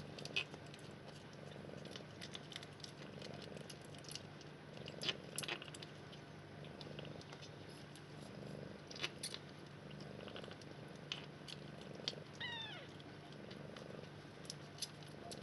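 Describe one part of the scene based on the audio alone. Newborn kittens suckle with small wet clicks.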